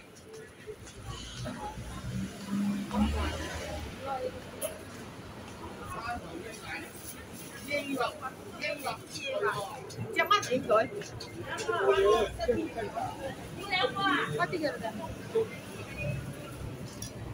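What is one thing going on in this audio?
Adults chatter nearby on a busy pavement.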